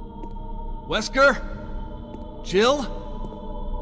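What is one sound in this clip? A man calls out loudly in a large echoing hall.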